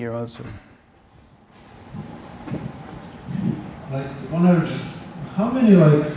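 A man speaks calmly through a headset microphone in a large echoing hall.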